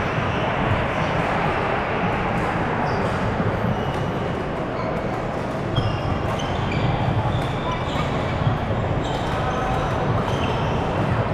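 Rackets strike a shuttlecock back and forth.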